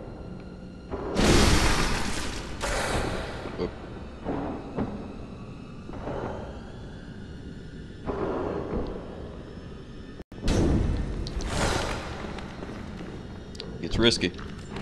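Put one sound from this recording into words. Heavy blows strike and thud during a fight.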